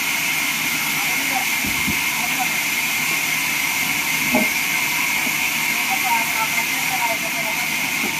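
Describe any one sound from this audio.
Wooden planks knock and thud as workers slide them.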